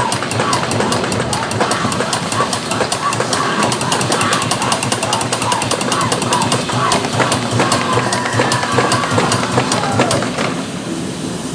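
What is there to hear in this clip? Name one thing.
An electric chair prop crackles and buzzes with rapid sharp snaps.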